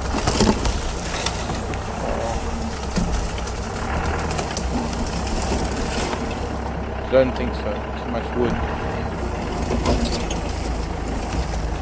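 Branches scrape and brush against a moving vehicle.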